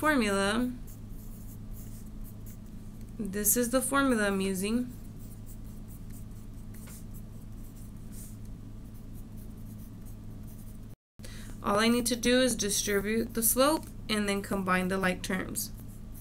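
A marker scratches and squeaks on paper.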